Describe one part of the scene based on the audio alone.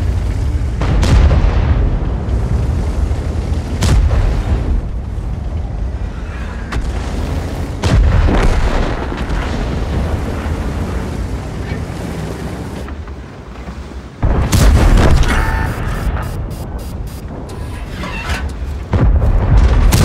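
Heavy cannon shots boom with sharp cracks.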